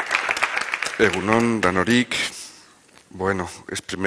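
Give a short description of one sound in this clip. A man speaks into a microphone over loudspeakers in a large hall.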